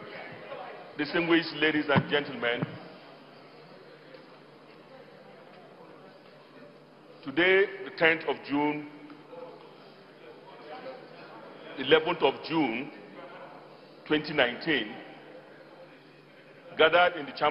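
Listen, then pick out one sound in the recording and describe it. A man reads out slowly and formally through a microphone in a large echoing hall.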